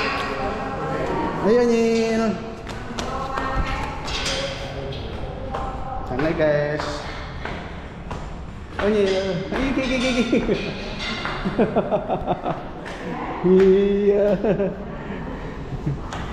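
Footsteps climb stone stairs.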